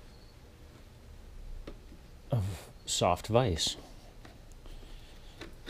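A hand tool clicks softly against a bicycle bolt.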